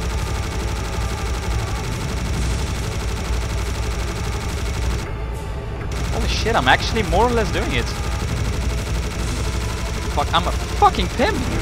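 A heavy machine gun fires in a rapid, continuous roar.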